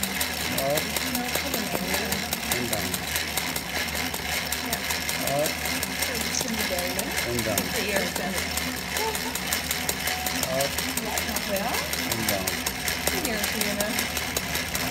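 A sewing machine needle stitches with a fast, steady rattle.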